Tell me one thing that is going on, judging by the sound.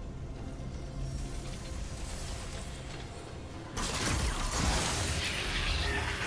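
Electronic game sound effects of blasts and magic crackle and whoosh, growing louder partway through.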